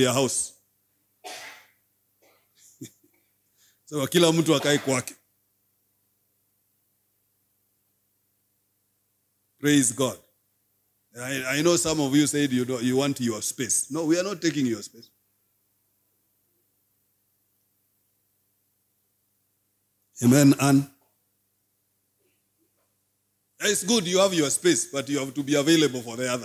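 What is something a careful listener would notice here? A man speaks calmly into a microphone in short bursts with long pauses.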